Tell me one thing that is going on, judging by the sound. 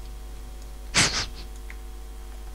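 A magic spell bursts with a bright whoosh.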